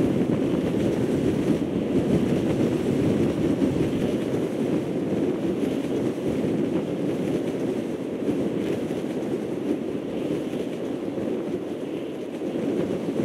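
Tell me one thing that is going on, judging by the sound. Wind rushes steadily past a parachutist gliding through the air.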